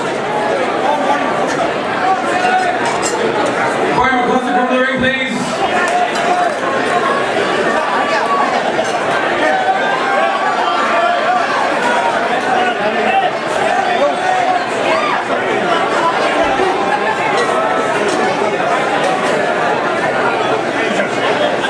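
A crowd chatters loudly in a large echoing hall.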